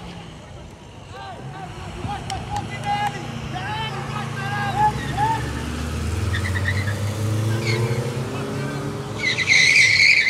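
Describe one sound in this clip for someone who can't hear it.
A car engine rumbles as a car drives past on the street.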